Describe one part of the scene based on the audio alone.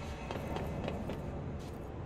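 Footsteps run quickly across a hard floor.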